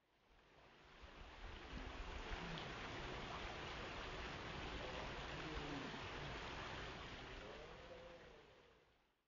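Water trickles steadily over stones.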